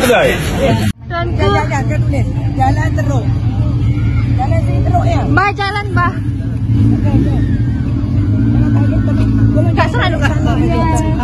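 An elderly woman talks with animation from inside a car.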